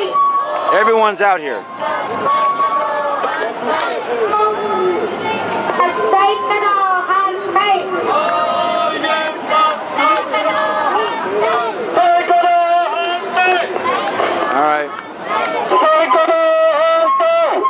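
A crowd chants together in response.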